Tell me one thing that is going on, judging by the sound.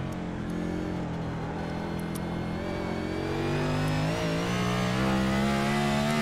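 A race car engine roars steadily and rises in pitch as the car speeds up.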